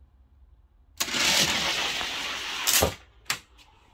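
Toy cars roll fast down a plastic track with a rushing rattle.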